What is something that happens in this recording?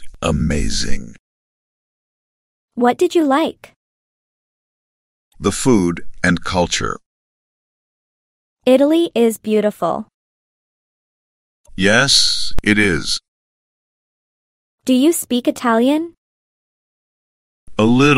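A young man speaks calmly and clearly, close to a microphone.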